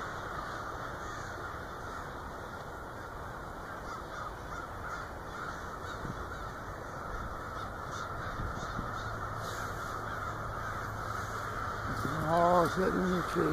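A large flock of birds chatters and calls steadily overhead.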